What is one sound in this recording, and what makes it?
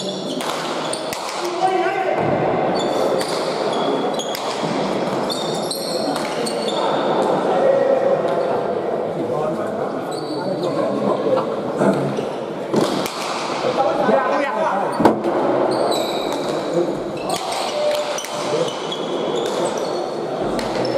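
A ball smacks sharply against walls, echoing in a large hall.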